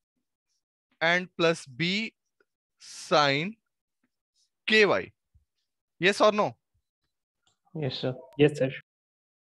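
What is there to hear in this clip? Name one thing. A young man speaks calmly through a head-worn microphone, in short phrases with pauses.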